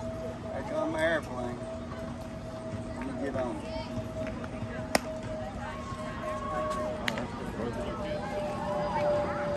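Young women call out across an open field.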